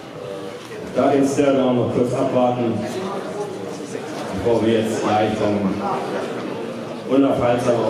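A man speaks with animation into a microphone close by.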